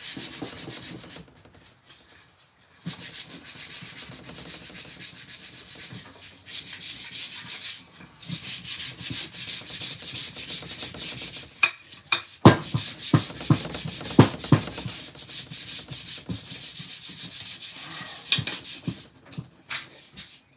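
A hammer taps rapidly and steadily on metal.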